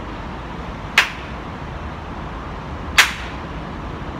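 A man claps his hands twice, sharp and close.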